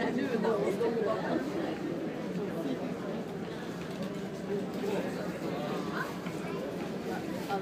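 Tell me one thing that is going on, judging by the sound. A ship's engine hums steadily, heard from inside.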